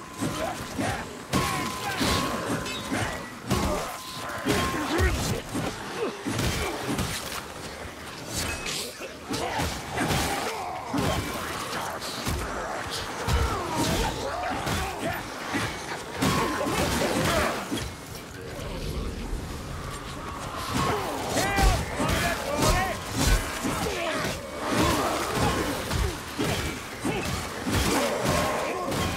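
Monsters growl and snarl as they charge.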